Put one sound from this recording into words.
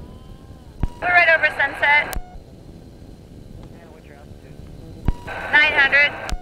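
A man speaks briefly through a crackly headset radio.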